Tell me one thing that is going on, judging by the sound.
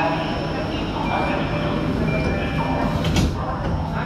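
Train doors slide shut with a thud.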